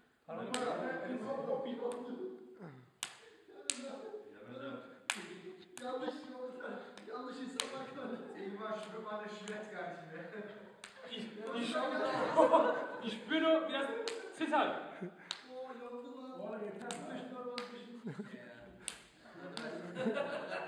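Hands slap together in sharp claps.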